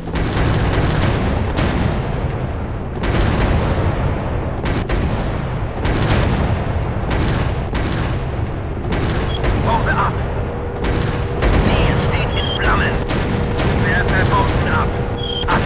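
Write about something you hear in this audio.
Bombs explode with deep booms.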